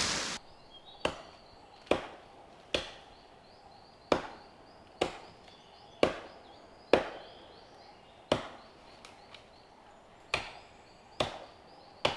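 An axe chops wood at a steady pace, each blow echoing across the valley.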